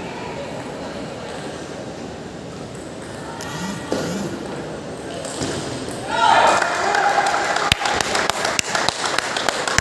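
Table tennis balls tap sharply on tables and paddles in a large echoing hall.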